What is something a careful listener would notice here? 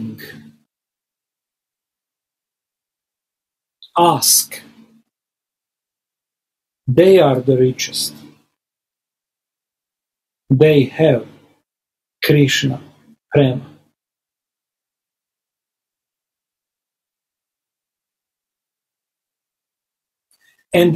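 A middle-aged man speaks calmly in short bursts with long pauses, heard through an online call.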